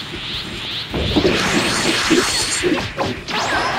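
Heavy blows and blasts crash loudly.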